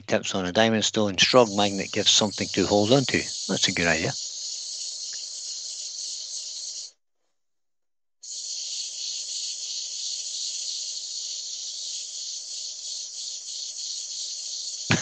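Sandpaper hisses against wood spinning on a lathe.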